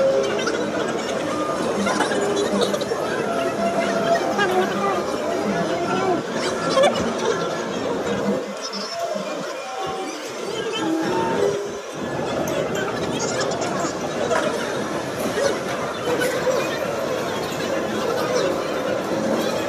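A crowd of children and adults chatters and calls out in a large echoing hall.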